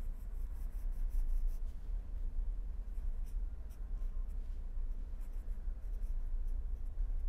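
A marker squeaks softly as it writes on paper.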